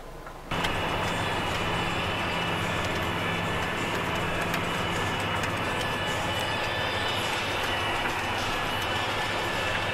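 A tractor engine drones steadily, heard from inside the cab.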